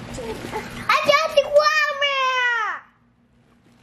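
A young child squeals loudly in a high voice.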